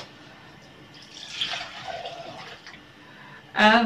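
Milk pours into a plastic jug.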